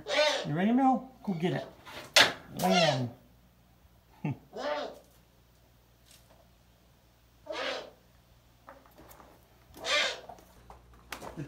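An owl calls with harsh, rising and falling cries.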